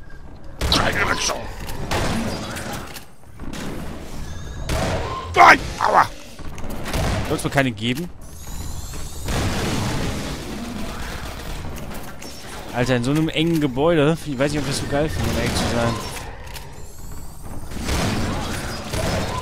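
Shotgun blasts boom again and again.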